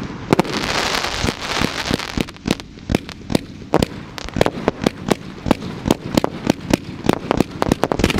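Fireworks launch from close by with sharp whooshing pops.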